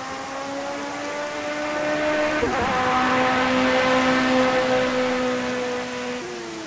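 A racing car's engine roars at high revs as the car speeds past.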